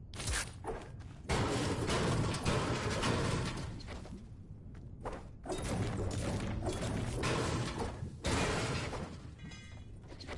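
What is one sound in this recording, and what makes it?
A pickaxe clangs repeatedly against metal.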